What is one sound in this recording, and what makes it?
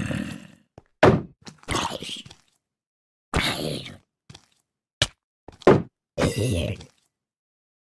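Blows thud as a zombie is struck.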